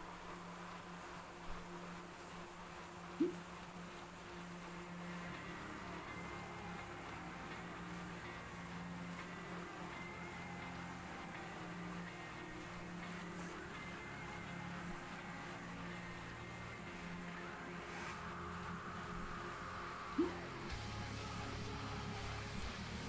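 A bike trainer whirs steadily under pedalling.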